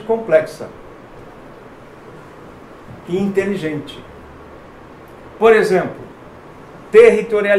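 A middle-aged man lectures calmly, speaking in short bursts with pauses.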